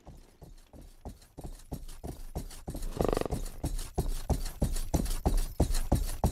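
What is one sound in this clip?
Horse hooves pound on a dirt path, drawing closer and louder.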